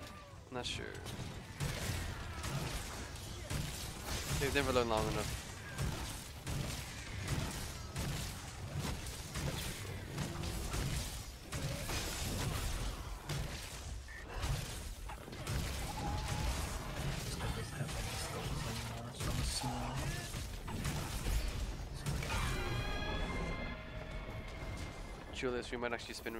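Heavy blade strikes thud and clang against a beast.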